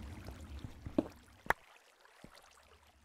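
A pickaxe breaks a stone block with a sharp crack.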